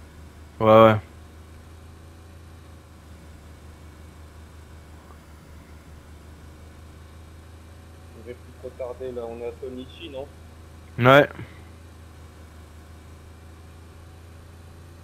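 A car engine hums steadily at a low pitch.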